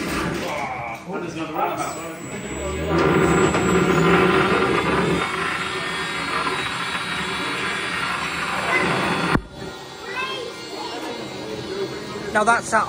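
A small robot's motor whirs as its wheels roll across a hard surface.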